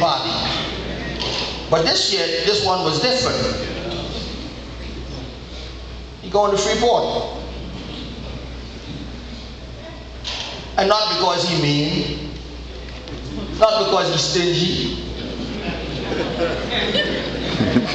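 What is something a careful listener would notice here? A man speaks through a microphone, with a loud echo in a large hall.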